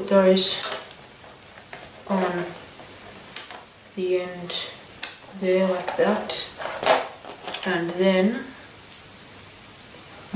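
Small plastic bricks click and snap together.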